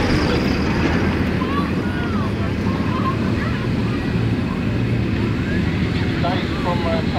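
Off-road trucks' engines rumble as they drive over dirt.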